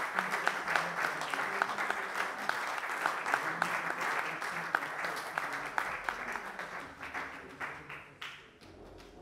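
Hands scrape and tap against a wall, with a bright echo in a large room.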